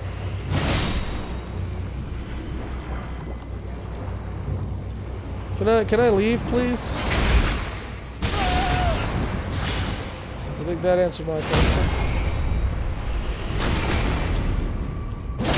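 Heavy weapon blows strike and clang.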